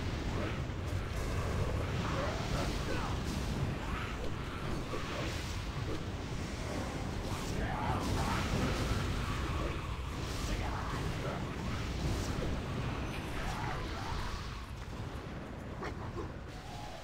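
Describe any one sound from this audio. Crackling magic blasts rumble loudly.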